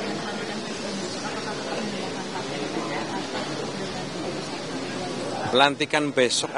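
A crowd of people murmurs and chatters.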